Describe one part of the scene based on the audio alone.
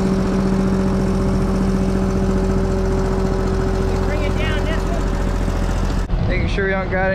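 A small engine hums loudly and steadily close by.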